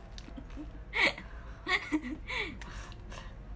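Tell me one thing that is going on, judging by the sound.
Two young women laugh close to the microphone.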